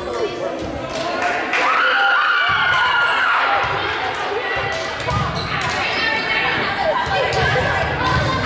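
Young players shout and call out to each other in a large echoing gym.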